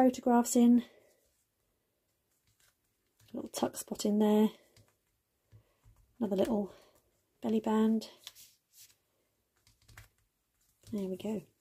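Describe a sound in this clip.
Stiff paper rustles softly as a card is opened and closed.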